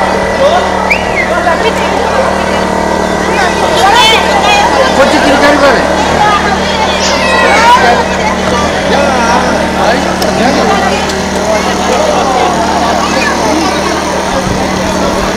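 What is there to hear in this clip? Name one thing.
A crowd of people chatters all around outdoors.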